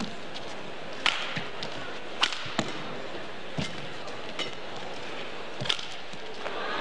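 A shuttlecock is struck back and forth with sharp racket pops.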